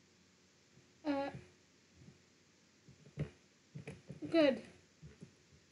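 A young boy speaks briefly and softly, close to a microphone.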